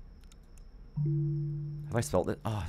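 A short computer alert tone sounds.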